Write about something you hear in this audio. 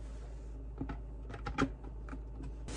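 A plastic lid clicks shut on a container.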